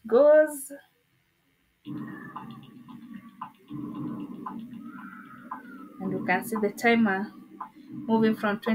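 A woman speaks with animation and laughs close to a microphone.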